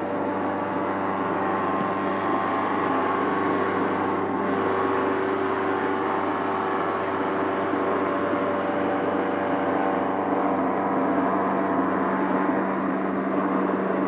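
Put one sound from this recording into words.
A stone cutting saw grinds through a slab, growing louder.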